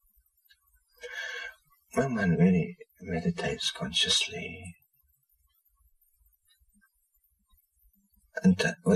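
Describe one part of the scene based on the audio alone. A middle-aged man speaks calmly and thoughtfully, close by, with long pauses.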